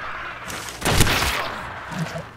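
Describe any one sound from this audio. A rifle fires a single shot.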